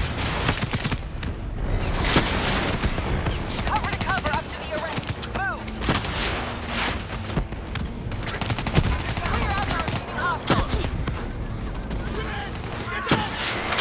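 Gunfire crackles in sharp bursts.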